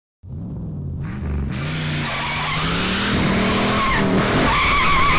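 A car engine hums and grows louder as the car approaches.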